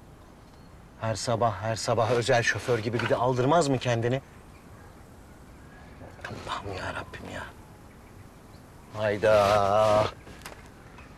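A middle-aged man sings loudly nearby.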